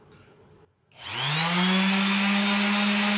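A small electric motor whirs up and runs steadily.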